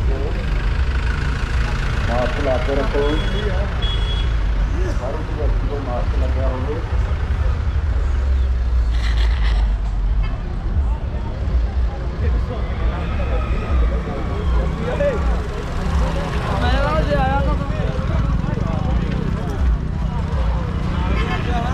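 A crowd of men chatter outdoors all around.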